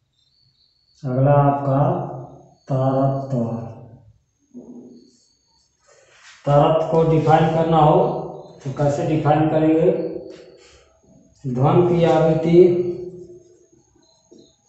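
A man speaks calmly and clearly close by.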